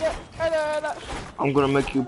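A pickaxe strikes wood with hollow knocks.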